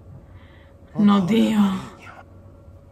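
A young woman exclaims briefly into a microphone.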